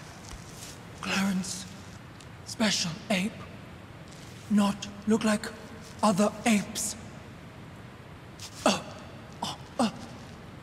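A young woman speaks calmly and briefly, close to a microphone.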